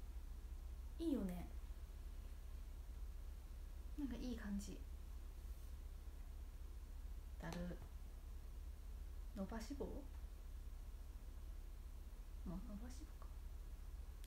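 A young woman speaks softly in short phrases close by.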